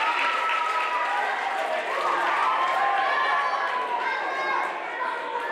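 A choir of children sings together, heard from across a hall.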